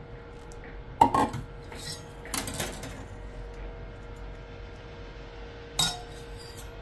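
A metal strainer clinks against a mug.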